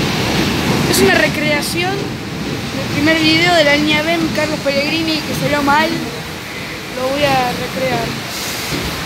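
Train wheels screech and squeal on the rails as a subway train brakes.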